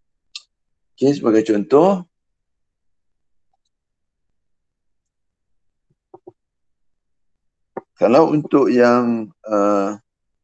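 A man speaks calmly over an online call, in short phrases.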